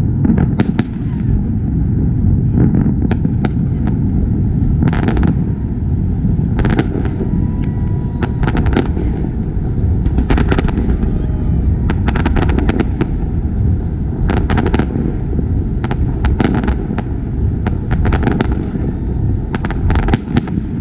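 Fireworks crackle and pop sharply overhead, outdoors.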